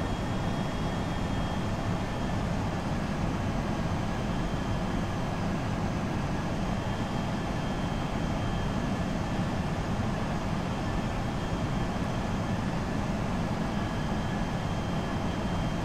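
Jet engines hum and air rushes steadily past an aircraft cockpit.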